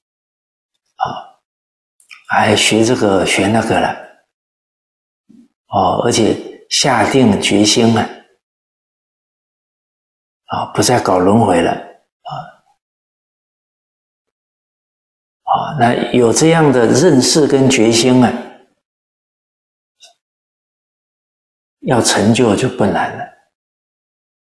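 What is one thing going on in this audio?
An elderly man speaks calmly and clearly into a close microphone, with pauses between phrases.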